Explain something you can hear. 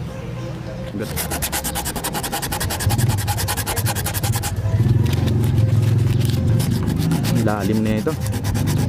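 Sandpaper rubs back and forth over plastic in quick, rhythmic strokes.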